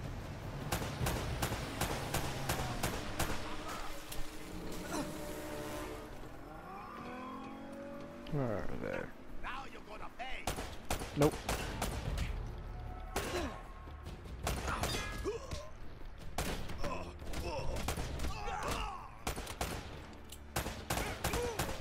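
Pistol shots ring out in quick bursts.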